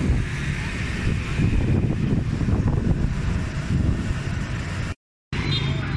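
Motorbike engines rumble in passing street traffic.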